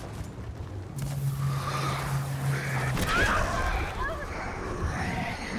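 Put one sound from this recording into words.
An explosion crackles and booms.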